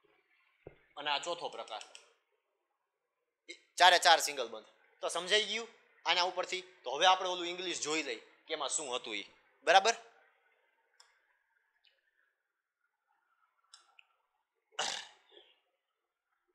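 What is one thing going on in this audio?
A young man speaks calmly and clearly into a clip-on microphone, explaining.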